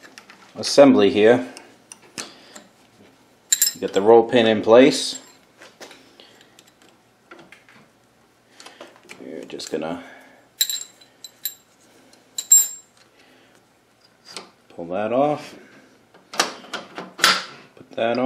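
Metal parts click and clink as a machine's handles and tools are handled.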